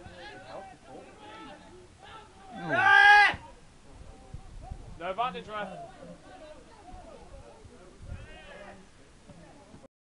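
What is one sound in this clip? Young men shout to each other across an open field, outdoors.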